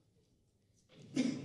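Acoustic guitars start to play.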